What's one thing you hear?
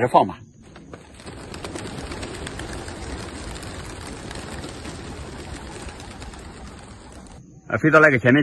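Birds flutter their wings as they take off.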